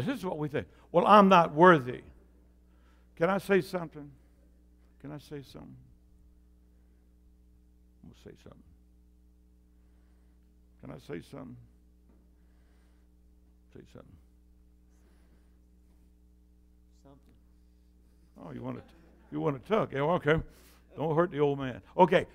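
An elderly man speaks with animation and long pauses, heard through a microphone in a room with some echo.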